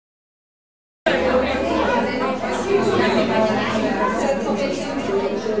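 A crowd of adult men and women chat and murmur in a room.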